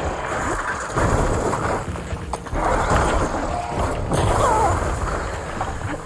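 A loud explosion booms and sizzles.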